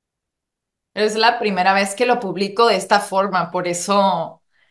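A young woman speaks with animation through an online call.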